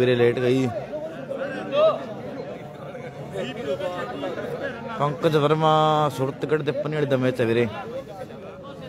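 A young man talks loudly and with animation close by.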